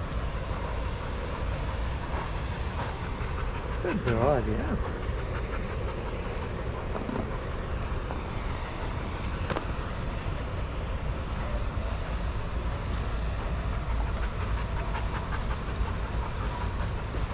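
A dog pants nearby.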